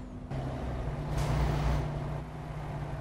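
Another truck rumbles past close by.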